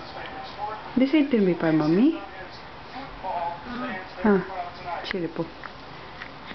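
A baby coos and babbles softly close by.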